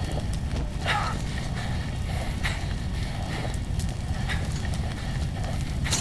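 A person breathes heavily through a gas mask.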